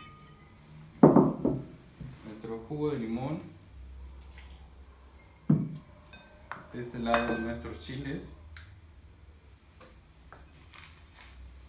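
Dishes and glasses clink on a table.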